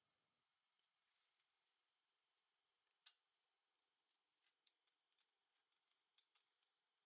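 A craft knife scrapes and shaves thin plastic in short, sharp strokes.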